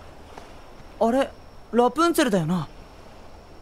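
A young man speaks in a puzzled voice.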